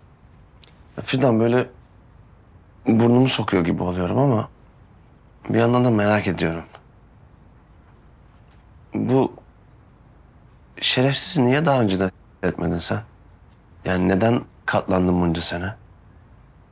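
A man speaks quietly and hesitantly nearby.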